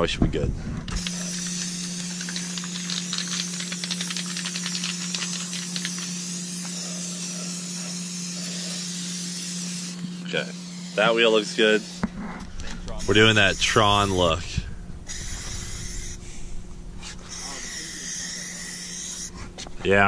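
A spray can hisses in steady bursts close by.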